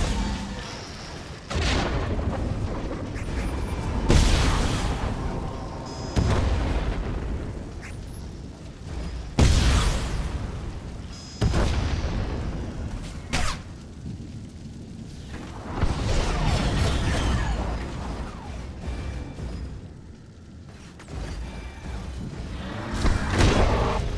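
Blaster shots fire in quick bursts.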